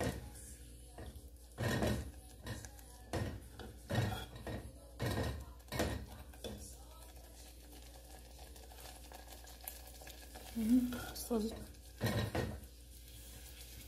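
A plastic spoon scrapes and knocks against a metal pot.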